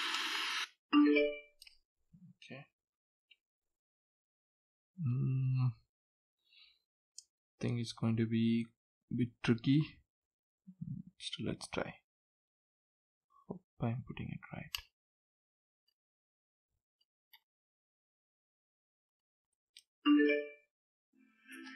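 A portable speaker plays a short electronic chime.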